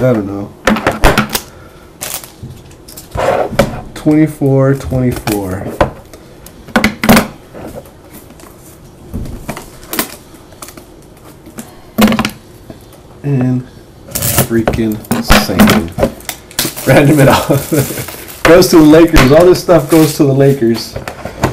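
Metal tins clank and knock against a table.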